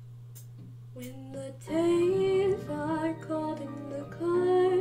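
A woman sings along to music close to a microphone.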